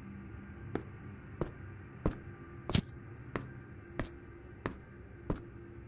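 Slow footsteps thud steadily on a hard floor in an echoing corridor.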